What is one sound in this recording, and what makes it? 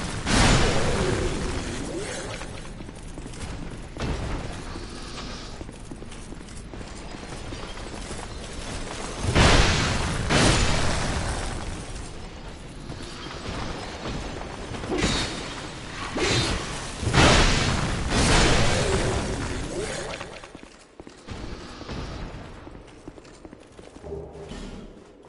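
A sword clangs and thuds in heavy blows.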